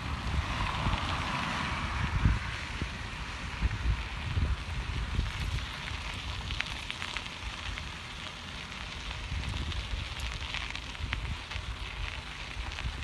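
Bicycle tyres crunch and roll over gravel.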